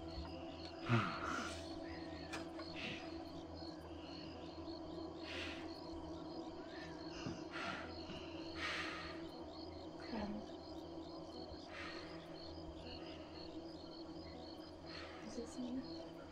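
A young woman speaks quietly and hesitantly.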